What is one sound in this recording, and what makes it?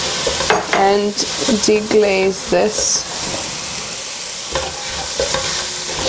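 A spatula scrapes and stirs through sizzling vegetables.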